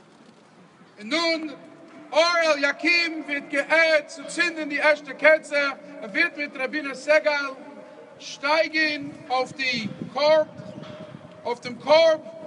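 A man sings loudly through loudspeakers with a strong echo.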